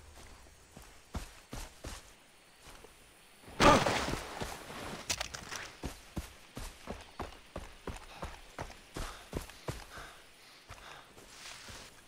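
Footsteps swish quickly through grass.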